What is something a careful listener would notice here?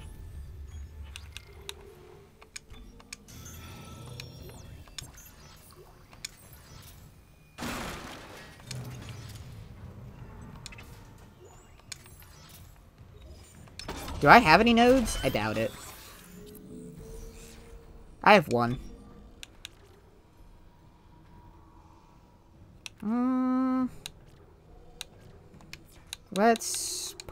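Electronic menu sounds beep and chime.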